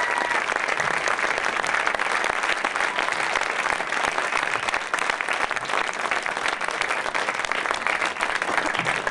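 An audience claps and cheers loudly in an echoing hall.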